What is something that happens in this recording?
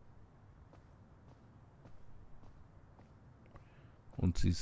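Footsteps tap softly on a floor.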